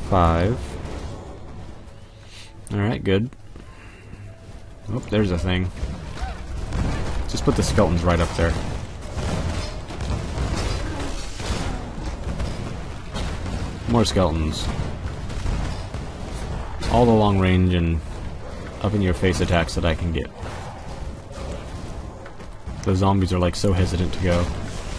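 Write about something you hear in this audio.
Magic spells burst and crackle in a fight.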